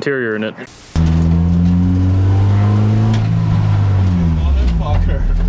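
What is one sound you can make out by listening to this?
A car engine roars loudly inside the car, revving and settling.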